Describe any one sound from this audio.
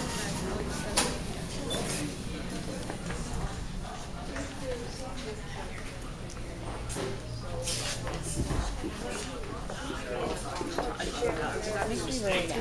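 A woman talks quietly nearby.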